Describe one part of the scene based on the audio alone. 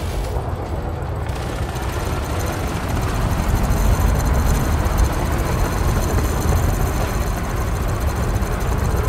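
A spacecraft engine rumbles deeply and steadily.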